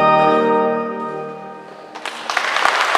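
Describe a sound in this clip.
A young woman sings into a microphone in a large echoing hall.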